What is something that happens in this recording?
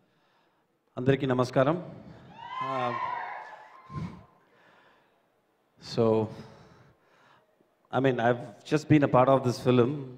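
A young man speaks through a microphone over loudspeakers, with animation, in a large echoing hall.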